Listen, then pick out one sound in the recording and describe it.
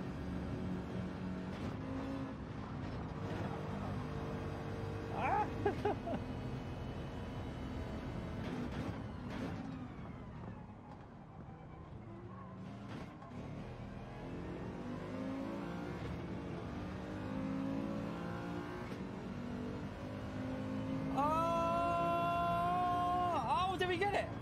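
A racing car engine roars and shifts gears.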